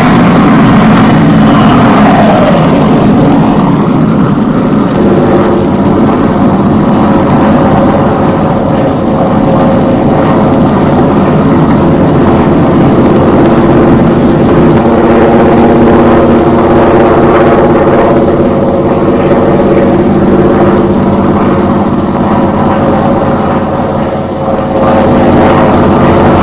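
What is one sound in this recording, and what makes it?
Propeller plane engines drone steadily overhead.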